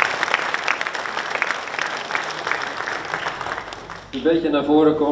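An audience claps in a room.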